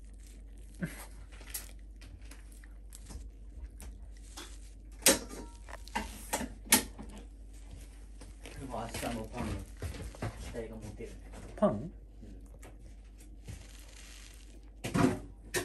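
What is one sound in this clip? A small dog crunches and chews on a treat.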